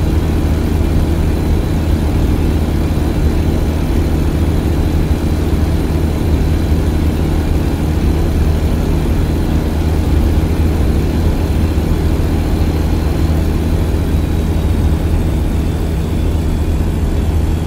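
A truck engine drones steadily at low speed.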